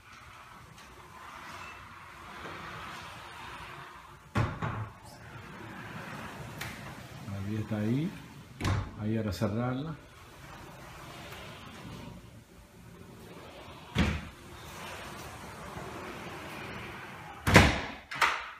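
Large glass doors slide along their tracks with a rolling rumble.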